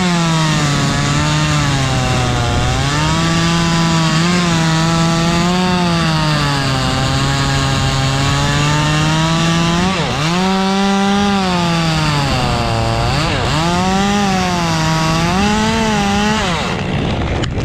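A chainsaw engine roars loudly, its pitch rising and falling as it cuts through wood.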